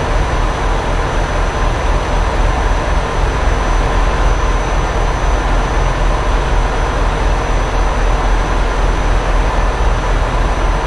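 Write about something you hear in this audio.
Tyres roll loudly on the road.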